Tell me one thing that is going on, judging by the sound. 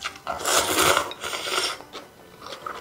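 A person slurps noodles loudly, close up.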